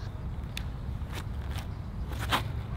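A flying disc whooshes through the air.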